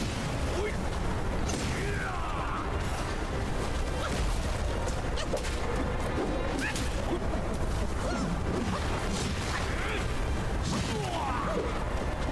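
Wind howls in a sandstorm.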